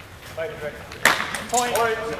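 Longswords clash in a bout.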